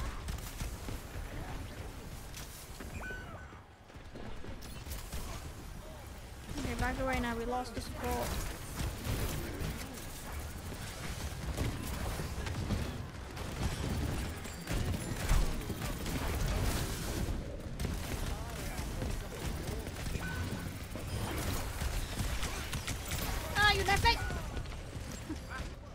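Rapid gunfire and blasts crackle and boom.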